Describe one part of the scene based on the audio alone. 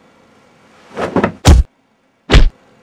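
A heavy coat thumps onto the floor.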